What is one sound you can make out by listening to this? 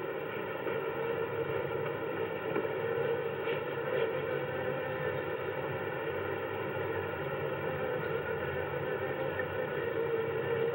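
Bees buzz.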